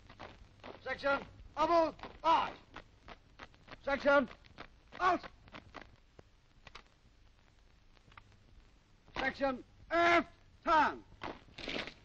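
A man shouts sharp drill commands outdoors.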